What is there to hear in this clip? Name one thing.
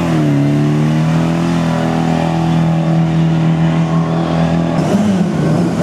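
A rally car engine roars loudly as the car speeds past.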